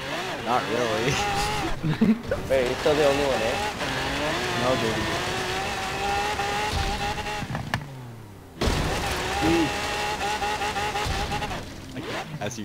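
A sports car engine roars and revs up and down at high speed.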